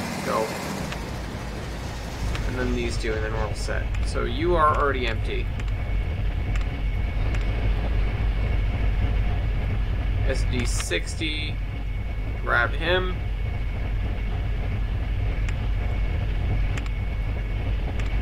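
A diesel train engine rumbles steadily.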